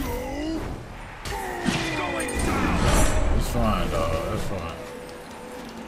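A young man talks into a headset microphone.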